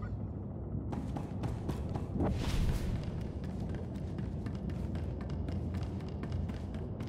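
Footsteps run across a hard metal floor.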